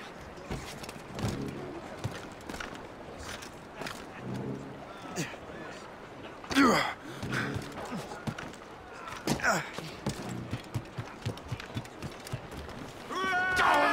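Footsteps thud quickly on a wooden deck.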